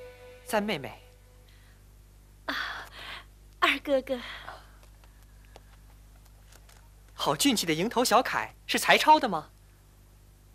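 A young woman speaks in short, lively phrases close by.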